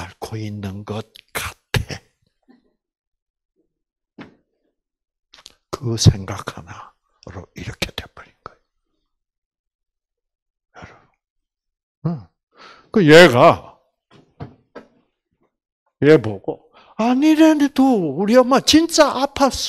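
An elderly man speaks with animation through a microphone, with pauses.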